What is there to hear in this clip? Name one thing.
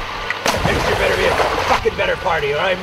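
Water splashes loudly as feet kick in a pool.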